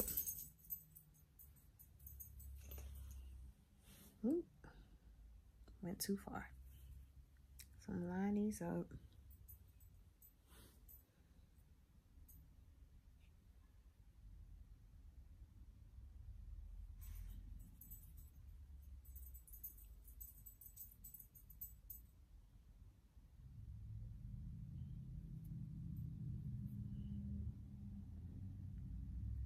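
Yarn rustles softly as a crochet hook works it.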